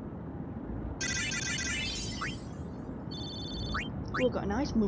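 Bright electronic menu chimes tinkle in quick runs.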